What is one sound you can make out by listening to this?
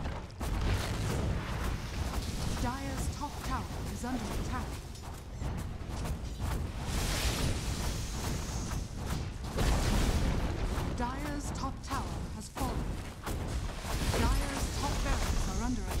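A fiery beam hisses steadily.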